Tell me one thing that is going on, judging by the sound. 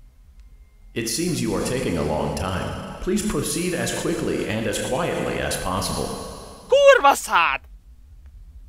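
A young man speaks with agitation into a microphone, up close.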